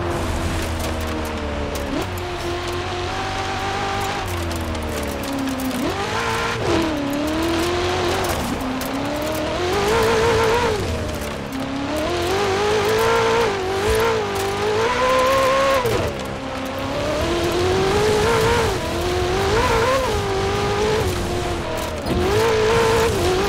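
A sports car engine revs loudly, rising and falling as the car speeds along.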